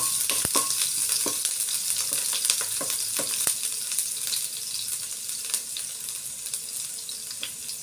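A wooden spatula scrapes and taps against a pan.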